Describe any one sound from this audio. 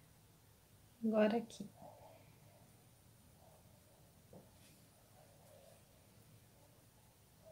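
A paintbrush dabs softly on fabric.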